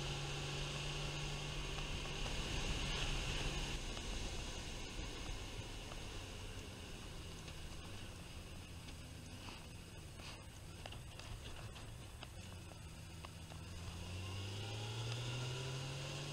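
A motorcycle engine hums steadily, easing off and then rising again.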